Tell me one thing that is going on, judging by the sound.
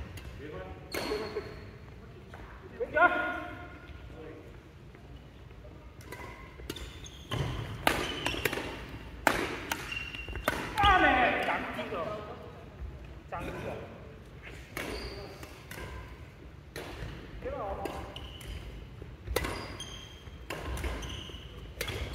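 Rackets strike a shuttlecock in a large echoing hall.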